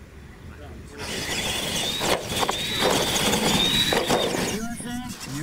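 Small electric motors whine as toy trucks race.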